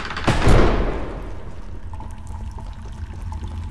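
Water flows gently nearby.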